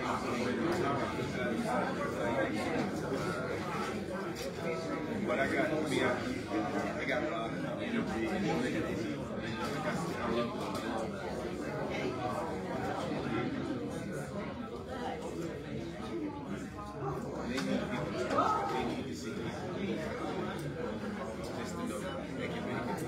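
A crowd of men and women chatter at once, close by.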